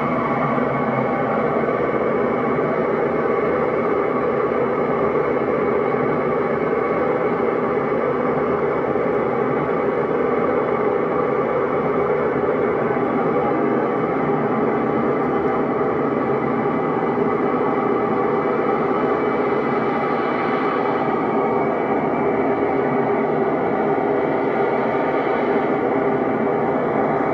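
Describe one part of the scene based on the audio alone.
Dense electronic noise music plays steadily from a synthesizer.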